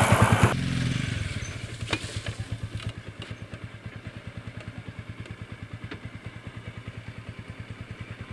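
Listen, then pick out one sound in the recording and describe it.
A motorcycle engine idles with a steady throb.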